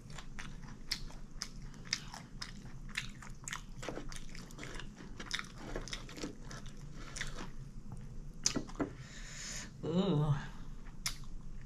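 Crispy fried food crackles and crunches as fingers pull it apart, close up.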